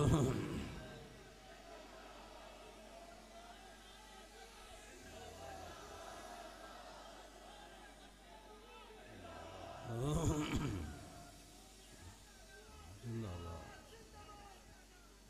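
An elderly man speaks with emotion through a loudspeaker.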